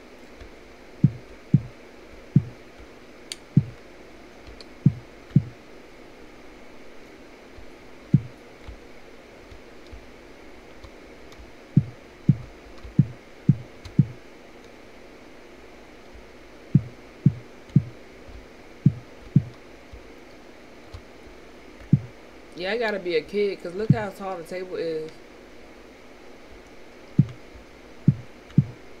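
Slow footsteps thud on a hard floor.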